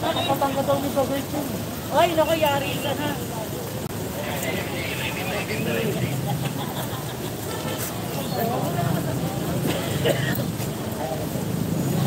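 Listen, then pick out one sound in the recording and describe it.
A crowd of men and women talk and call out nearby outdoors.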